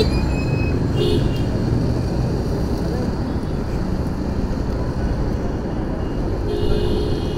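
Traffic drones along the road nearby.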